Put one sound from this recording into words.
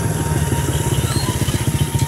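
A rooster flaps its wings briskly.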